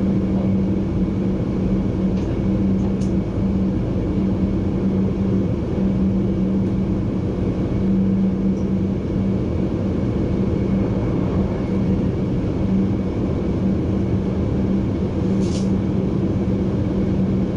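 A train rumbles steadily along the tracks with a low hum.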